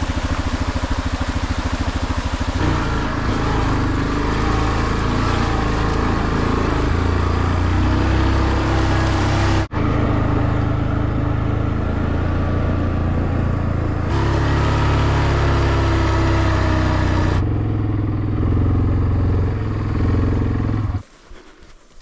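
An all-terrain vehicle's engine rumbles steadily as it drives.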